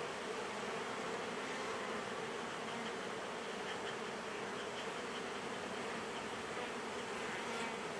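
A bee smoker puffs in short bursts of air.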